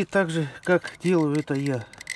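A wrench clinks against metal bolts.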